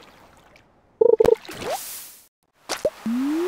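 A video game plays a short chime as a catch is pulled from the water.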